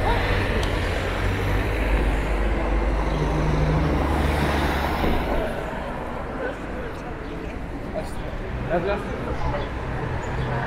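A crowd of men and women chatter outdoors nearby.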